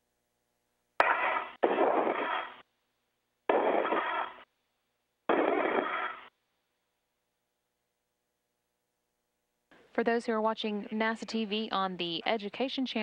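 A man speaks calmly over a crackly radio link in short bursts.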